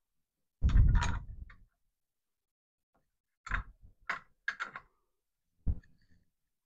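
A metal tool clicks against a metal part.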